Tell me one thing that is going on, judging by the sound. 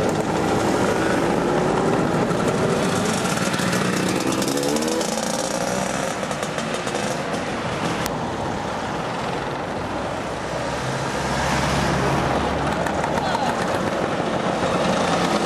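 Wind rushes loudly over a moving microphone.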